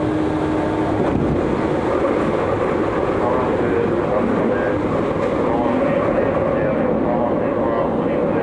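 Another train rushes past close by with a loud whoosh.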